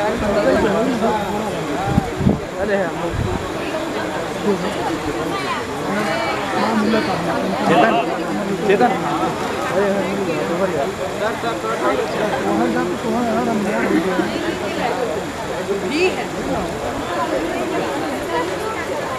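A crowd of men and women chatters loudly outdoors.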